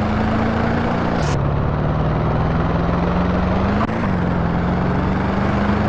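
A car engine hums steadily, dropping in pitch at gear changes.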